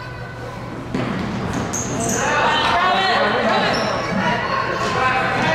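Children shout and call out on the court, growing louder.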